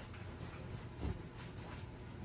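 A boy lands with a soft thump on a bed.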